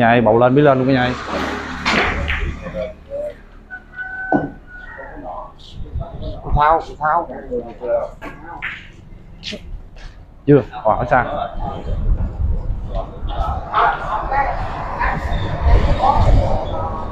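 Several men talk casually nearby.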